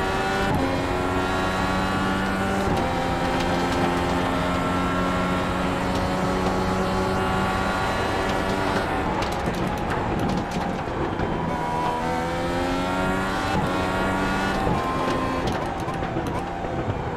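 A racing car engine roars at high revs, shifting gears up and down.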